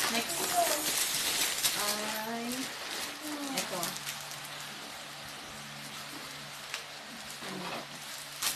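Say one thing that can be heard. Plastic wrapping crinkles as it is handled.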